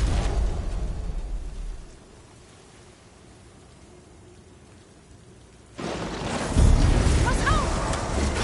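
Fire crackles nearby.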